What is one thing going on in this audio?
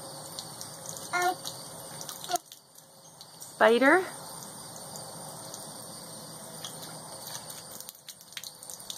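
Water from a hose splashes steadily onto concrete.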